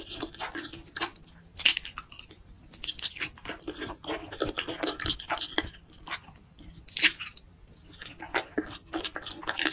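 A woman chews wet food with soft smacking sounds, close to the microphone.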